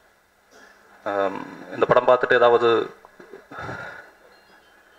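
A man speaks into a microphone over a loudspeaker, with pauses, in a room that echoes a little.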